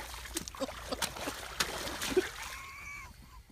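Boots splash and slosh through shallow water.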